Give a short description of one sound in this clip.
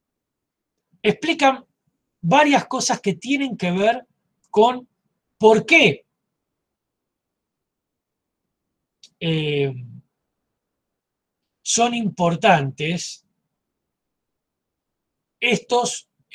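A middle-aged man speaks calmly in short bursts over an online call.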